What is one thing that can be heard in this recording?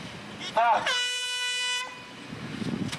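A car horn blares once.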